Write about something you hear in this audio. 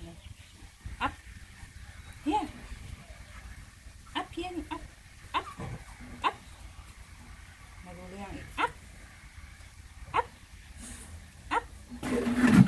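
A puppy whines and yelps in short high cries.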